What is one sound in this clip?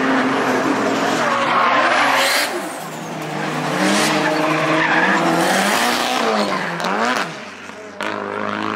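A car engine revs hard, rising and falling as it drifts past.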